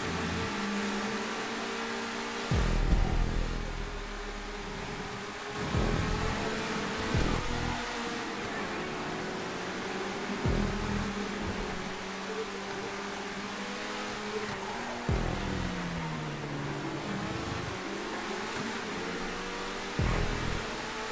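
A racing car engine roars steadily, shifting pitch as the car speeds up and slows.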